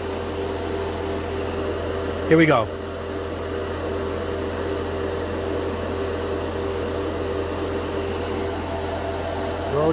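An airbrush hisses softly as it sprays.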